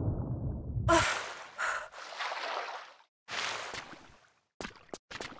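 Water splashes as someone wades and climbs out.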